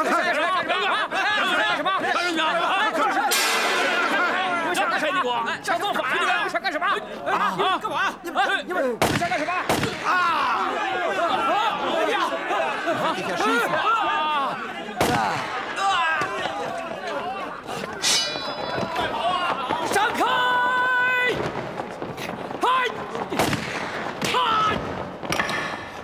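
Men shout and clamor over one another.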